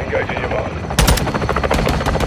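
A rifle fires a single loud shot close by.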